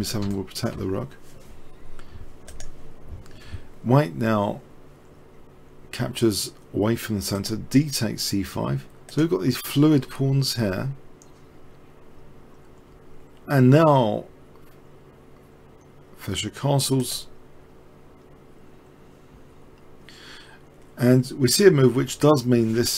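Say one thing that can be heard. A man talks calmly into a microphone, in bursts with pauses.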